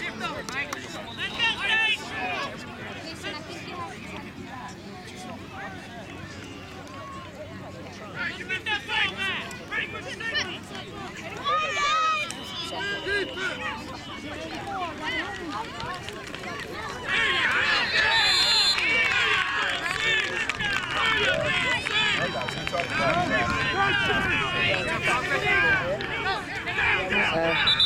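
Spectators cheer and shout from the sidelines outdoors.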